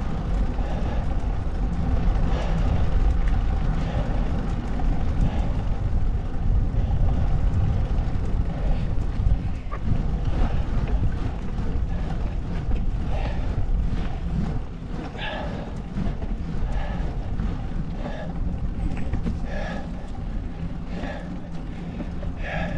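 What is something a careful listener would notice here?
Small wheels roll and hum on rough asphalt.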